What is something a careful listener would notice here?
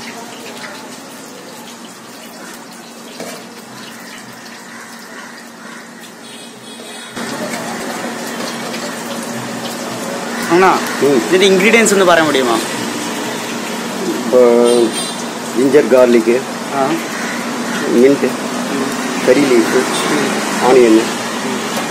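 Hands squish and toss a moist food mixture in a metal pot.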